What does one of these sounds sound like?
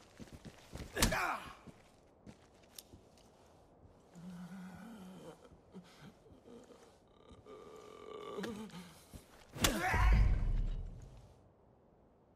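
A body is struck and thuds onto a floor.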